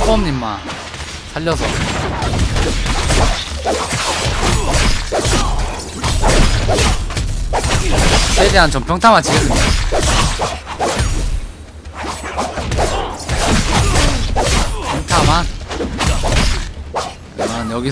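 Game swords clash and strike in quick bursts.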